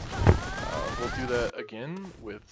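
A heavy blow lands with a sharp smack and a whooshing burst.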